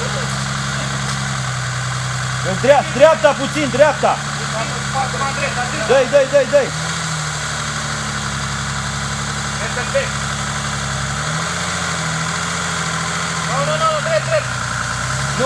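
An off-road vehicle engine idles and revs as it climbs a steep slope.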